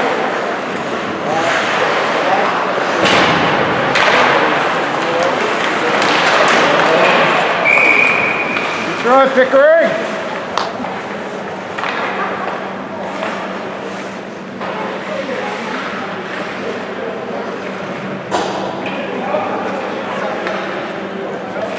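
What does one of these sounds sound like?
Spectators chatter and call out in a large echoing rink.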